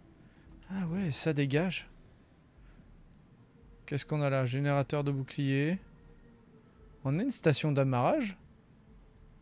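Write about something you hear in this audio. A man talks with animation into a close microphone, in short bursts.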